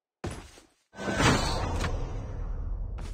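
A crate lid opens with a loud clunk.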